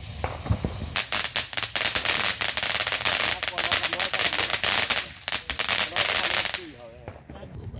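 A firework fountain crackles with sharp pops.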